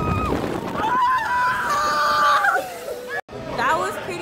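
A young woman screams close by.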